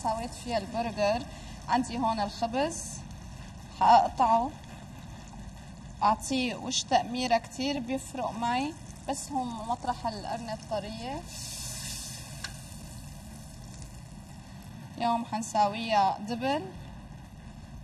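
A woman talks calmly into a microphone.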